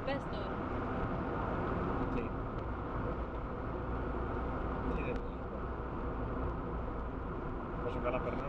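A car engine hums steadily with road noise inside the cabin.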